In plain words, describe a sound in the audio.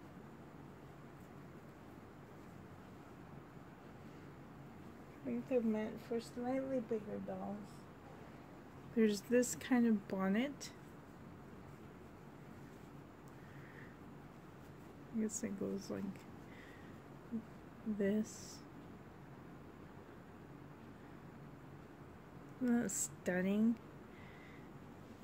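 Soft fabric rustles as a small garment is handled.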